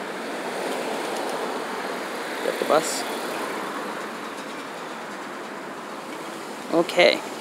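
Traffic hums steadily outdoors as cars drive past.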